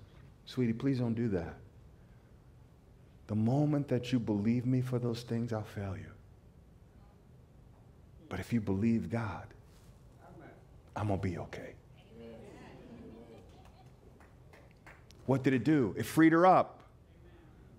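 A middle-aged man speaks with animation through a microphone, in bursts with pauses, in a large echoing hall.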